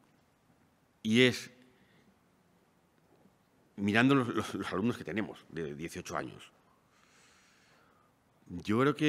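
A man speaks slowly and deliberately through a microphone, with pauses.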